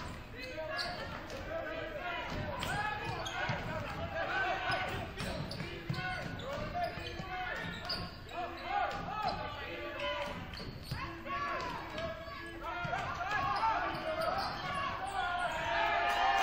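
Players and spectators call out and talk in the background.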